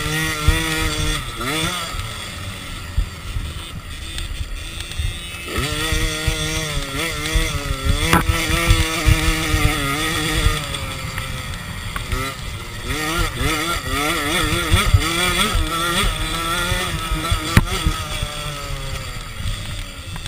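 A motorcycle engine revs up and down loudly, close by.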